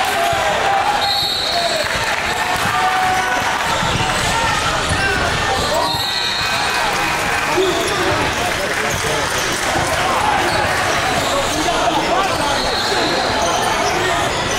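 A referee's whistle blows short and sharp.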